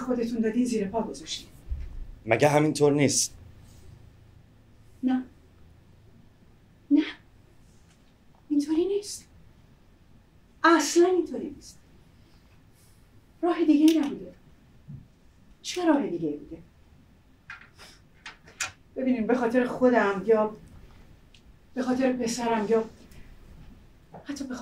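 A woman reads out lines expressively in short phrases with long pauses.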